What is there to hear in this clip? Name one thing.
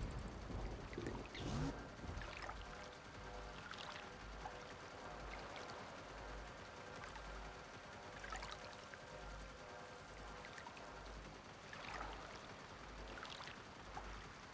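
Water laps and splashes gently nearby.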